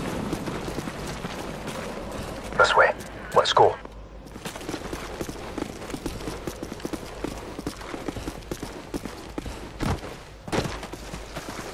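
Footsteps shuffle over a gritty concrete floor.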